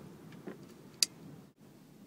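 A plastic lid snaps shut with a sharp click.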